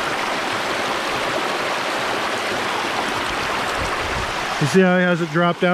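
Water pours and splashes from a sluice into the stream.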